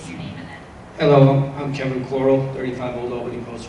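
A middle-aged man speaks through a handheld microphone.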